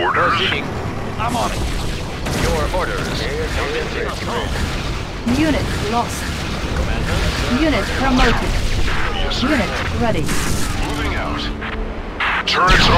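Explosions boom in quick succession.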